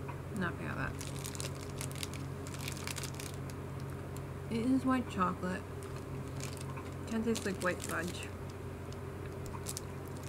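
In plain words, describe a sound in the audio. Plastic packaging crinkles in a woman's hands.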